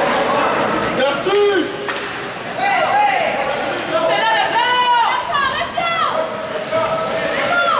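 Children shout and cheer in a large echoing arena.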